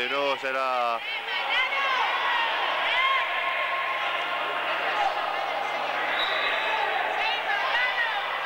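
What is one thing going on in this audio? Spectators murmur and chatter in an echoing hall.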